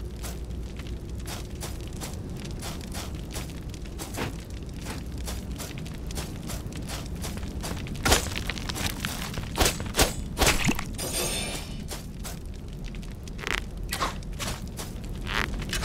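Heavy footsteps clank steadily on stone.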